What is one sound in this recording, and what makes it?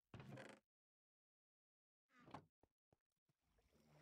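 A wooden chest thuds shut.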